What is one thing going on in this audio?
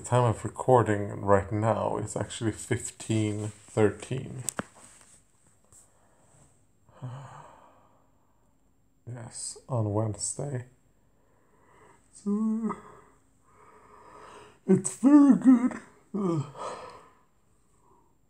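A man talks close up in a low, sleepy voice.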